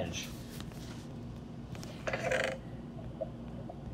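A chest creaks open.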